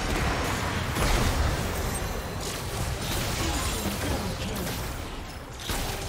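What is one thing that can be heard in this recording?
Game alert chimes sound.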